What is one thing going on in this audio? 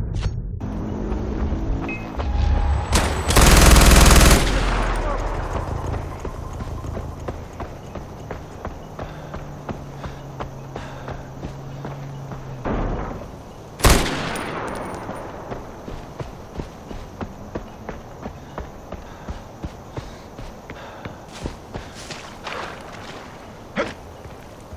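Footsteps crunch on gravel and grass at a steady walking pace.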